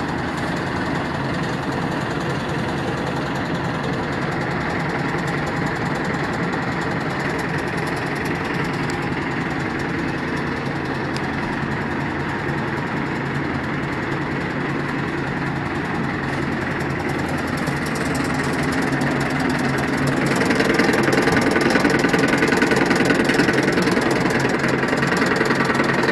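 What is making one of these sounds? A machine runs with a loud, steady mechanical hum and rattle, growing louder near the end.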